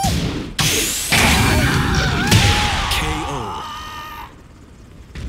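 A burst of fiery blasts crackles and booms.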